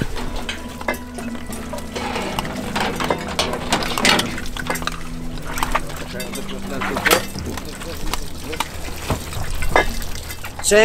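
Diving gear clanks against metal rails.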